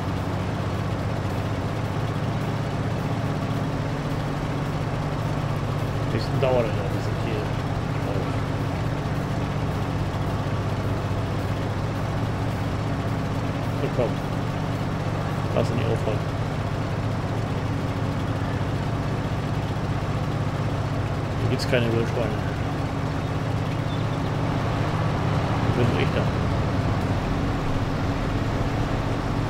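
A large harvester engine hums steadily.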